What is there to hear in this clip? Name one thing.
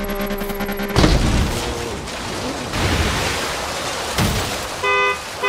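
A car slams into a wall with a loud crunch.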